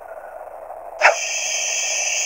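An electronic splash sound effect plays in a game.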